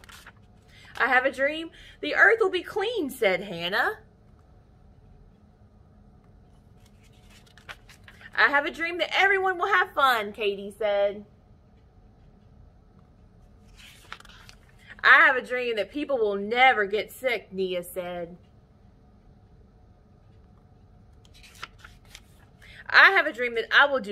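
A young woman reads a story aloud expressively, close to the microphone.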